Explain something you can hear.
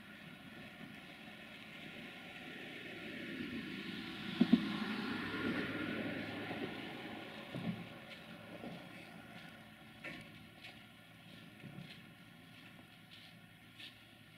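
A passenger train hauled by a diesel-hydraulic locomotive rumbles as it approaches.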